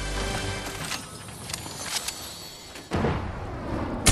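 A treasure chest creaks open with a jingling chime.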